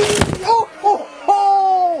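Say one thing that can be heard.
A toy racing car's electric motor whines as it speeds past on the track.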